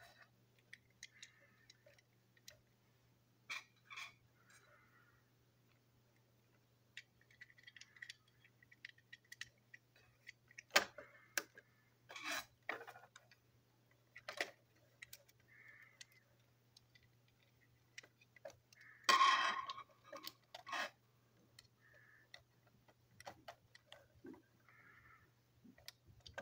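Plastic parts of a toy train engine click and knock as they are handled.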